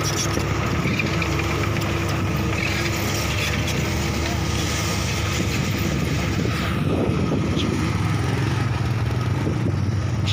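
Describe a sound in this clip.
Motorcycle engines putter as motorbikes ride slowly over dirt.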